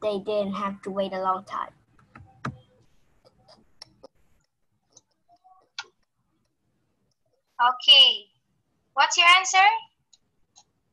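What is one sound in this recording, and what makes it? A young woman speaks calmly over an online call, pausing between phrases.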